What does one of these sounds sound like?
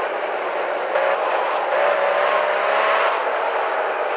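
Car tyres screech.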